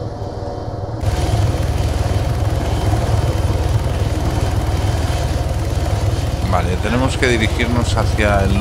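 A helicopter's rotors roar close by outdoors.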